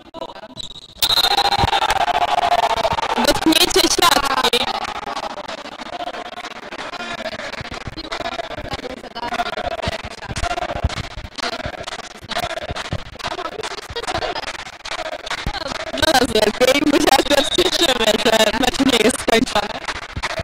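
Young men shout and cheer loudly in an echoing hall.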